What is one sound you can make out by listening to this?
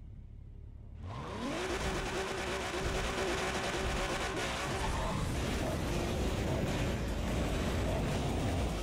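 A racing car engine revs hard and roars away.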